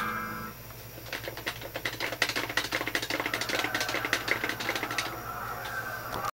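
A large crowd cheers and roars through a television speaker.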